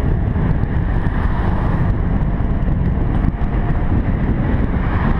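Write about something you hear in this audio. Wind rushes and buffets loudly as a rider coasts downhill.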